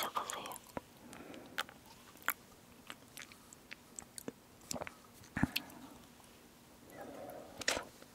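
A young woman sips and swallows a drink.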